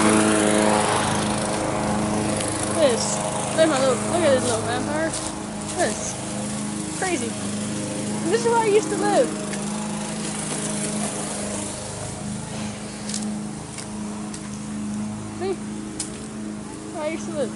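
Footsteps crunch over dry leaves and pavement.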